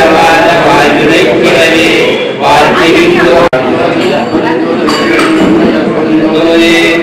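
A group of elderly men chant a prayer together in unison.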